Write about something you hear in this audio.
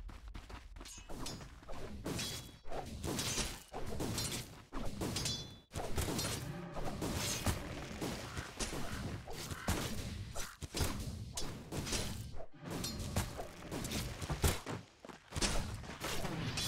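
Swords clash and magic blasts crackle in a fast battle.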